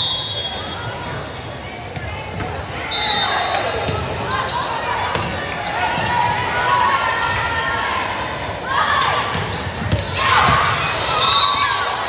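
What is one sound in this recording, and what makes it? A volleyball thumps as it is served and hit.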